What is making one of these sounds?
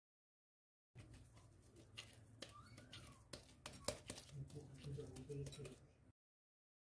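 Gloved hands knead soft dough with quiet squishing and clicking sounds.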